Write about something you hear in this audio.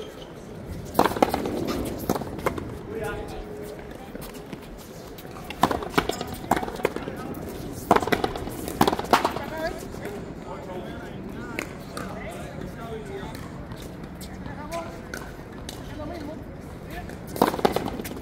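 A ball smacks sharply against a wall in a large echoing court.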